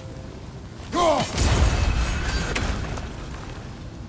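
Heavy rock cracks and crumbles apart with a rumble.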